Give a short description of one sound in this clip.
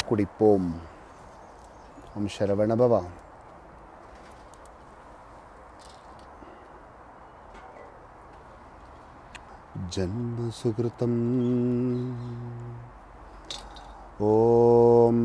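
A man chants in long, steady tones close by, with pauses between phrases.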